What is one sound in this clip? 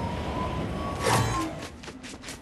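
A game character lands with a thud.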